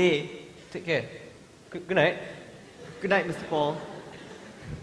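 A man shouts loudly in an echoing hall.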